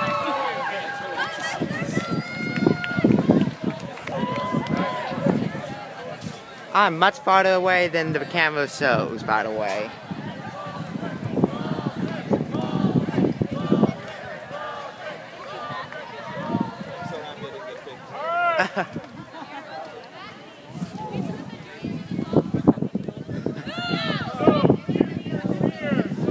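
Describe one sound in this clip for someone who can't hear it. A crowd of young people chatter outdoors.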